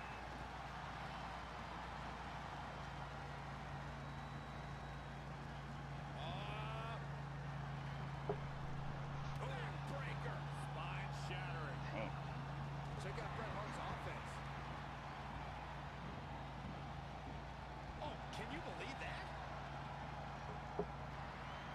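Wrestlers' blows land with sharp thuds.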